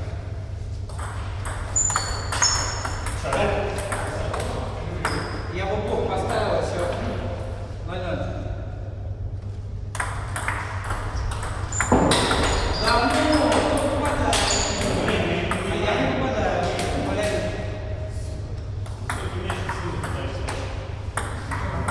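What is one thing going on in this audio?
Table tennis balls click sharply against paddles and tables in quick rallies.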